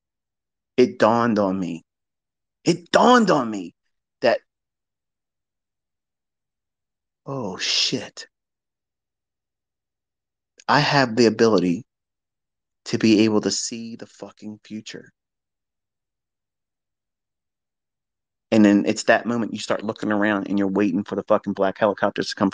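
A man speaks through a microphone in short bursts with long pauses.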